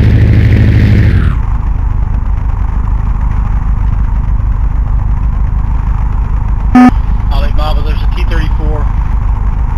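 A propeller aircraft engine drones steadily and loudly, then quiets a little.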